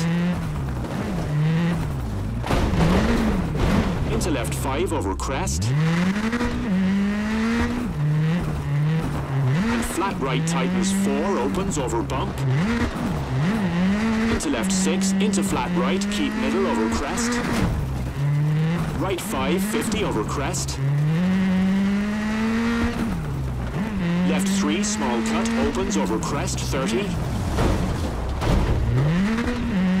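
Gravel spatters against the car's underside.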